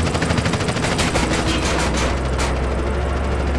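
A tank cannon fires with loud bangs.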